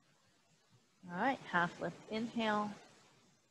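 A woman speaks calmly, giving instructions close to a microphone.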